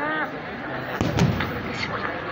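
A firework bangs nearby.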